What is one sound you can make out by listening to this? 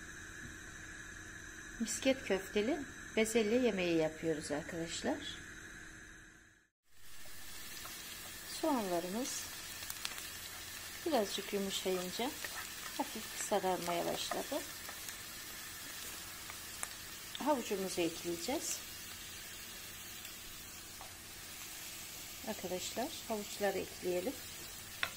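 Chopped onion sizzles in oil in a frying pan.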